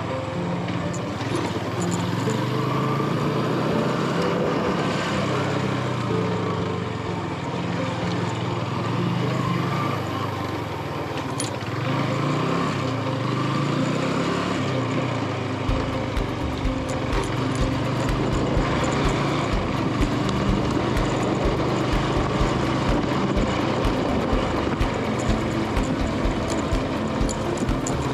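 A motorbike engine hums steadily, rising and falling in pitch.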